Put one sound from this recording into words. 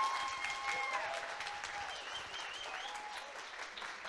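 An audience cheers and claps.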